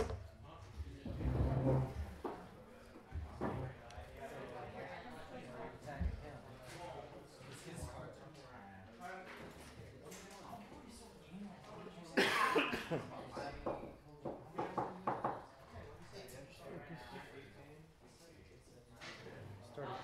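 Two men talk casually nearby.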